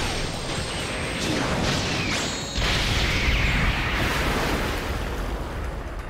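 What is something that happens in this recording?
A swirling energy blast roars and booms.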